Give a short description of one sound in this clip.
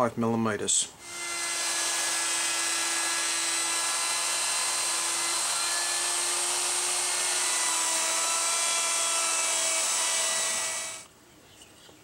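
A handheld router whirs loudly with a steady high whine, then stops.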